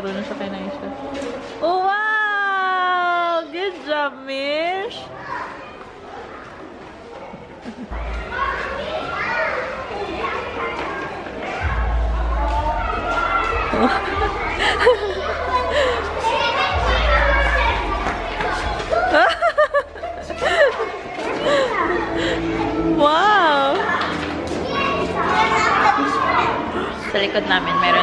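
Young children shout and chatter in high voices.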